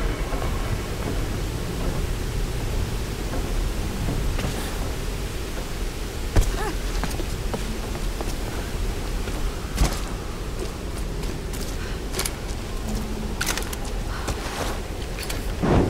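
A waterfall rushes steadily nearby.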